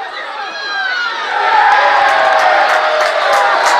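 A small crowd cheers and shouts loudly outdoors.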